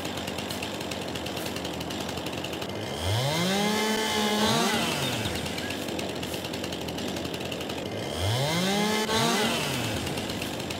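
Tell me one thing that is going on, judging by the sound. A chainsaw engine idles with a steady putter.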